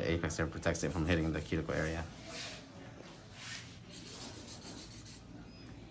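A nail file scrapes in short strokes against a fingernail.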